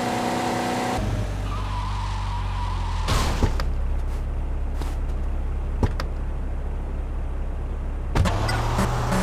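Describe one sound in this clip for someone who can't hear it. A car engine idles with a low rumble.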